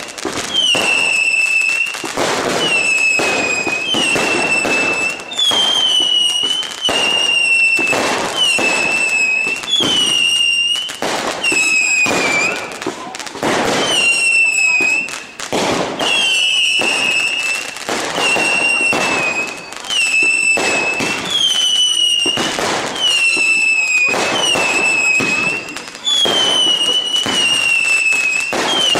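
Fireworks crackle and sizzle as sparks fall.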